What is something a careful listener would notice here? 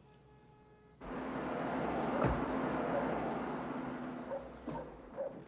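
A truck engine rumbles outdoors.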